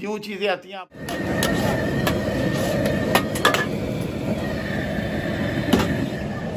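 Food sizzles and hisses in a hot wok.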